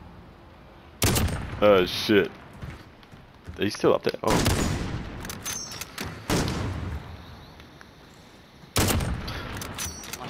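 A rifle fires loud single shots that boom and echo.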